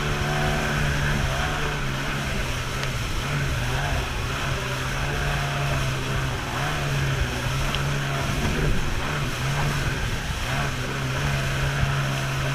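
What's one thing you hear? Water splashes and rushes past the hull.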